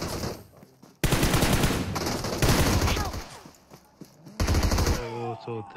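Rapid gunfire rattles at close range.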